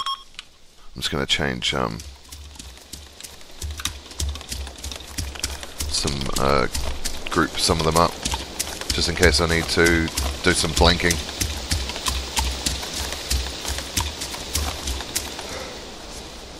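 Footsteps crunch steadily through grass and brush.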